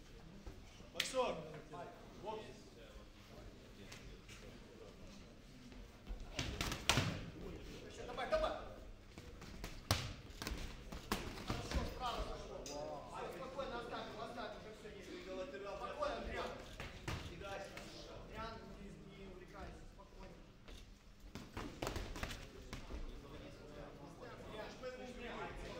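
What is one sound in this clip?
Men talk nearby in a large echoing hall.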